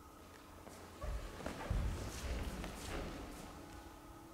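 Bare feet stamp and shuffle on a wooden floor.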